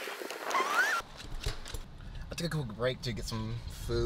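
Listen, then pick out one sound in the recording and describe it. A man talks with animation close by inside a car.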